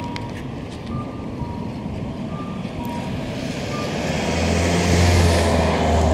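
A dog pants close by.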